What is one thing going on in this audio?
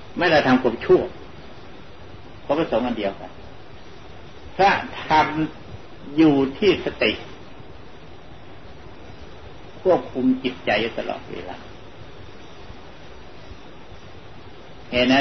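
An elderly man speaks slowly and calmly, with long pauses.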